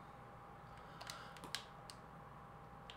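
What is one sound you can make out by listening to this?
A gun's metal parts click and clack as it is handled.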